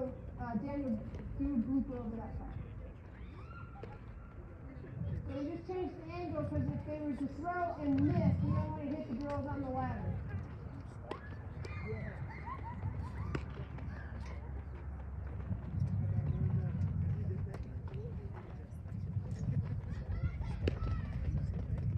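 A softball smacks into a leather glove.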